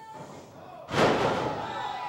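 A wrestler's body slams hard onto the ring mat.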